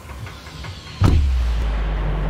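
A sudden loud whoosh bursts out as a game figure leaps into the air.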